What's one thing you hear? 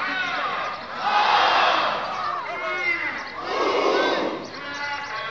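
A crowd cheers loudly in bursts.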